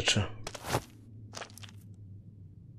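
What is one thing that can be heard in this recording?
Footsteps thud quickly on a stone floor.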